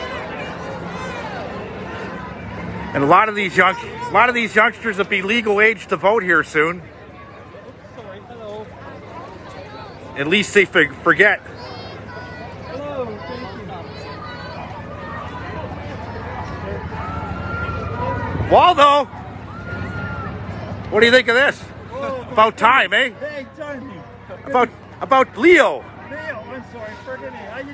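A crowd murmurs and walks outdoors.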